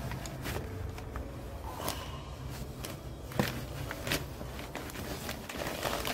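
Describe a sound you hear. Foam squishes and crackles softly as fingers press into it.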